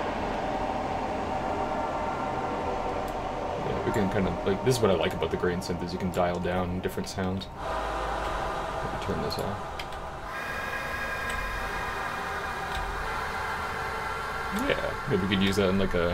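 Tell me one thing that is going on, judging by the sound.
Electronic synth music plays steadily.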